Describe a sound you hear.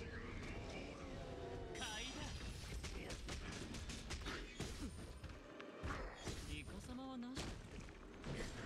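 Game battle effects crash and burst in quick succession.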